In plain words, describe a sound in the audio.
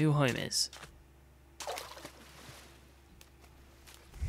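Water splashes gently as someone swims.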